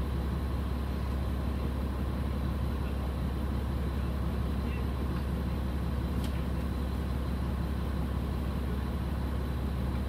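A diesel railcar's engine idles, heard from inside the carriage.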